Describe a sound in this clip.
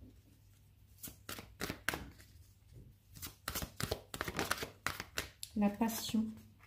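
Cards flick and rustle as they are shuffled by hand.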